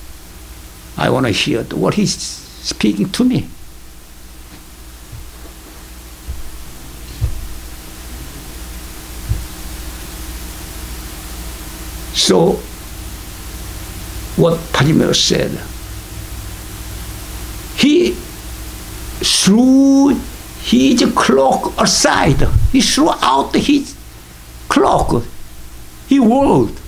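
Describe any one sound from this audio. An elderly man speaks with animation into a microphone, with long pauses.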